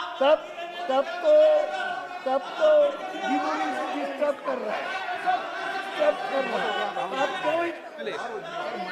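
An elderly man speaks loudly and with animation into a microphone.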